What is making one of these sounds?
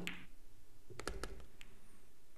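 Pool balls clack against each other.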